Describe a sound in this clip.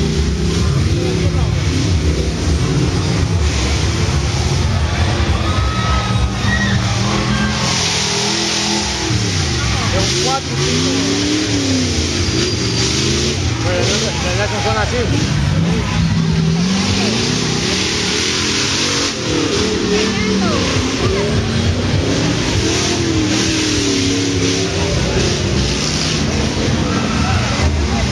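A race car's engine revs hard.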